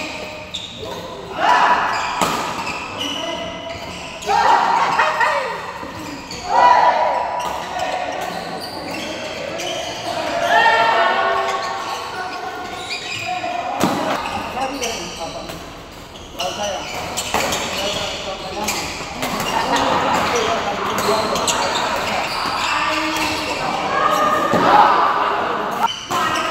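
A shuttlecock is struck with rackets in sharp, quick smacks.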